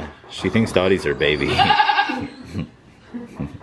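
A goat bleats loudly nearby.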